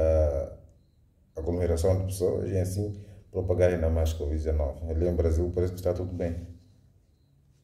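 A man talks calmly into a microphone.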